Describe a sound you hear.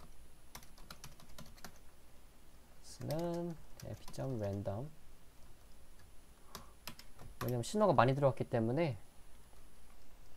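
Keys clatter on a computer keyboard in short bursts.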